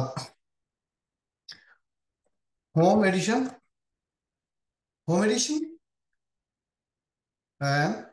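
A man speaks calmly into a microphone in short phrases with pauses.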